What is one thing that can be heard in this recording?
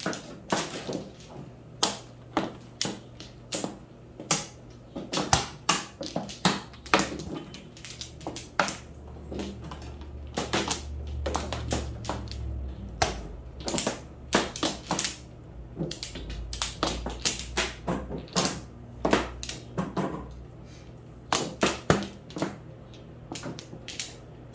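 Plastic tiles clack sharply as they are placed and tapped on a table.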